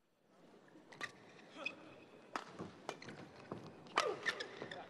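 A racket strikes a shuttlecock with sharp smacks.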